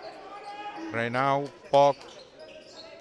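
A man shouts from the sideline in an echoing hall.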